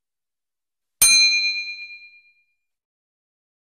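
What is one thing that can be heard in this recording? A small bell rings once and fades.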